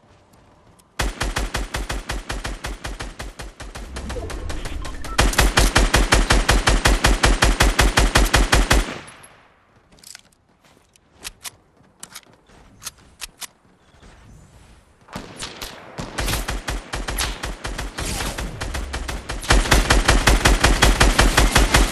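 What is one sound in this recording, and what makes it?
A rifle fires rapidly in long bursts.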